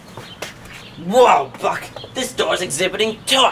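A young man speaks with animation into a handheld microphone, close by.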